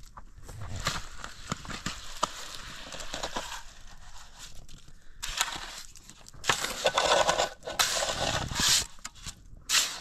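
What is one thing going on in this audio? Wet cement mortar slides out of a metal bowl onto concrete blocks.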